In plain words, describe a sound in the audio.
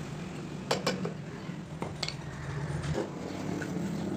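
A chisel knocks and scrapes against wood.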